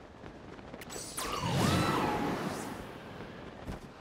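A loud whoosh of rising air swells and fades.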